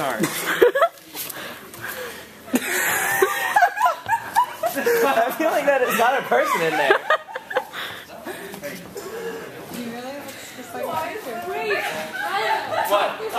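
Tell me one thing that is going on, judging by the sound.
Young women laugh and talk nearby.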